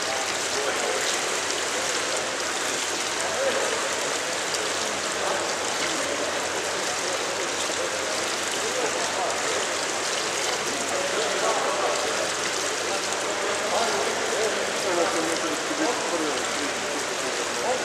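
Men's voices echo faintly in a large, echoing hall.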